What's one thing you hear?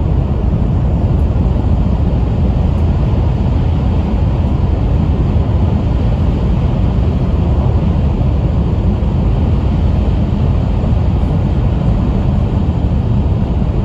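A train rumbles steadily along the tracks at speed.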